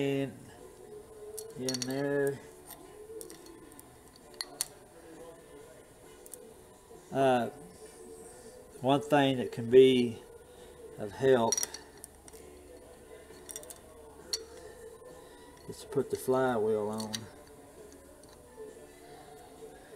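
Small metal parts click and tick faintly as a gear is handled.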